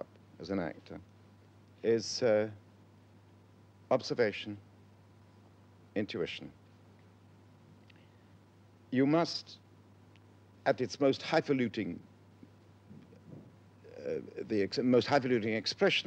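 A middle-aged man speaks slowly and thoughtfully, close to a microphone, with pauses.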